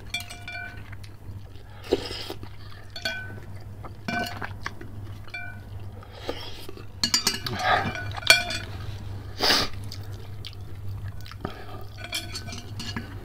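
A metal spoon clinks against a glass bowl.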